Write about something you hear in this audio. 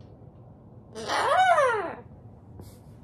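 An umbrella cockatoo screeches.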